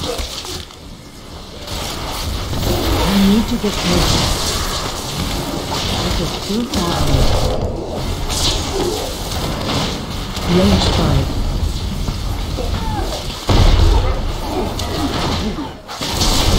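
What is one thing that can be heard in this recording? Video game combat effects clash and boom.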